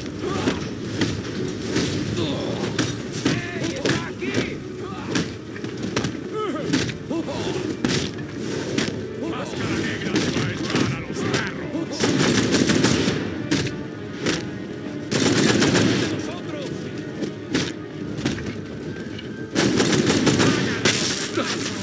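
Punches and kicks land with heavy thuds in quick succession.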